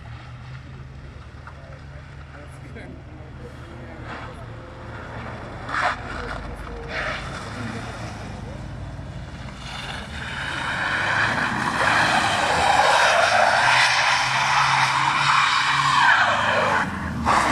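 A car engine revs hard as the car drifts in circles.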